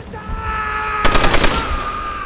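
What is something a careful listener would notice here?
A machine gun fires a rapid burst close by.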